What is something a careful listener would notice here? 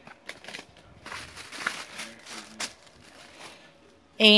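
Tissue paper rustles and crinkles.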